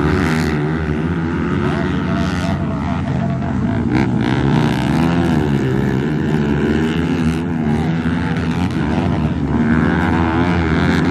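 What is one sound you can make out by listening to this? Motocross engines rev loudly as dirt bikes race and jump.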